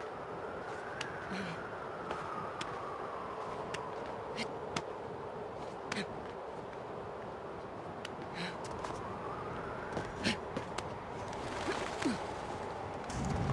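Hands and feet tap and scrape on stone while climbing.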